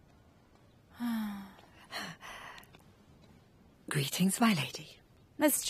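A woman speaks calmly from a short distance.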